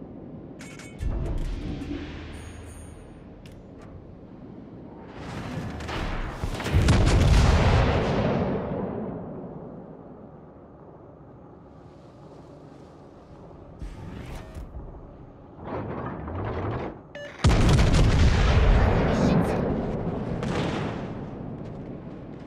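Heavy naval guns fire with deep, rumbling booms.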